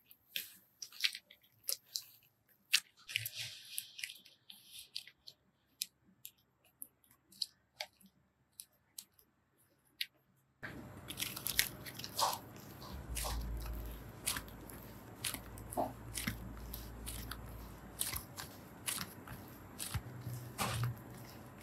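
Play dough stretches and tears with soft crackling.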